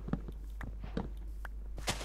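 A dirt block crumbles as it is broken.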